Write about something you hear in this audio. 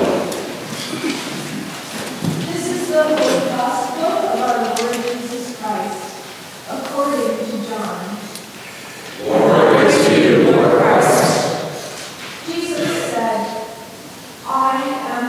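An elderly woman reads aloud clearly in a large echoing hall.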